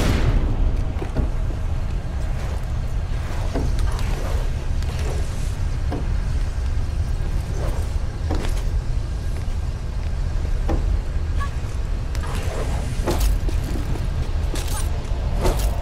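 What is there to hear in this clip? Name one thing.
Hands grab and scrape on stone ledges while climbing.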